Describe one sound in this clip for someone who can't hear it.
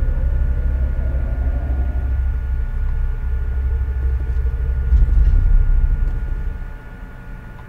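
A lift hums low.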